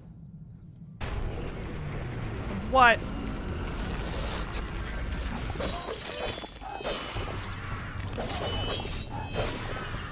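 Blades clash and slash in quick bursts of fighting.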